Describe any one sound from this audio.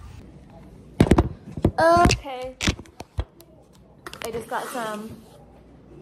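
A young woman taps objects on a countertop.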